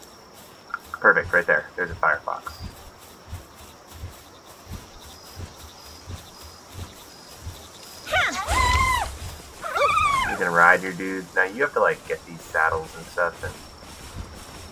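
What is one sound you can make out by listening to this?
A man speaks casually into a nearby microphone.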